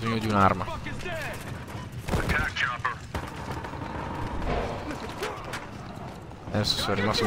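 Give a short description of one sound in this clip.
Gunfire and explosions boom from a video game.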